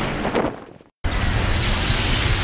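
A burst of energy blasts with a loud whoosh.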